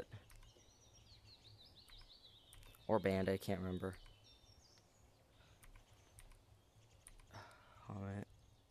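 Keyboard keys click softly as they are pressed.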